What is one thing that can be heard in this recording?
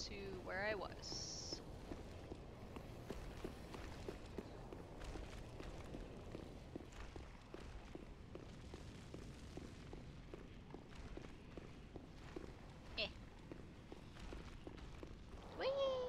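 Armoured footsteps tap steadily on stone.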